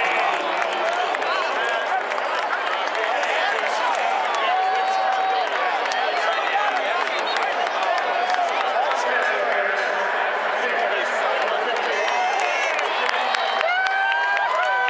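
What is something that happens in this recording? A large stadium crowd cheers and shouts loudly, echoing in a vast hall.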